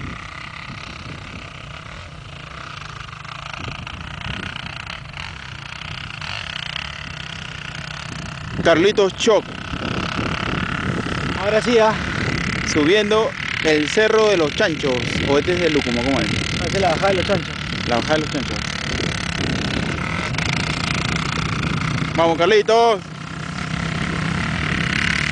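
A dirt bike engine revs up and down, growing louder as it approaches.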